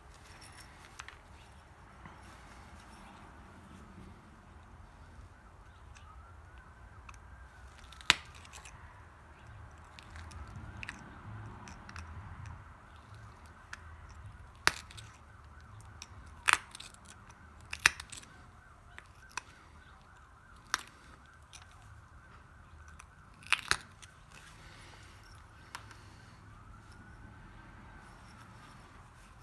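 A knife scrapes and whittles wood.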